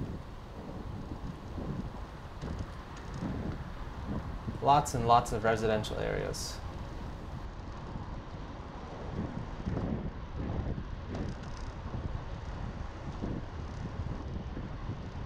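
Wind buffets the microphone.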